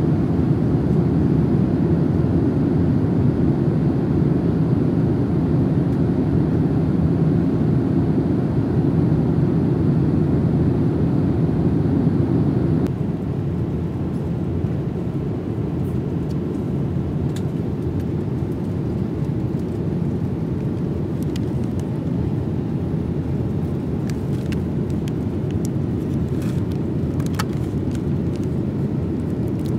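A steady low roar of jet engines fills an aircraft cabin.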